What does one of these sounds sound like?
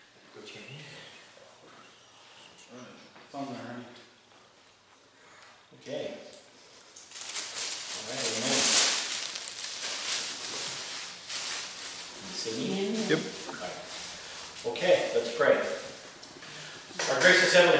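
A middle-aged man speaks with animation in a slightly echoing room.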